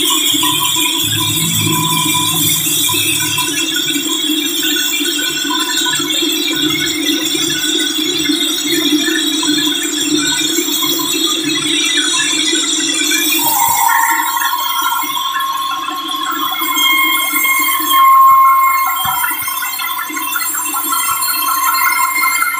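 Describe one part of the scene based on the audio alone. A large band saw cuts through a hardwood log.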